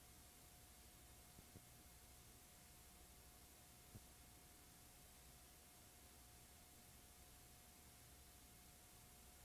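Steady static hisses faintly.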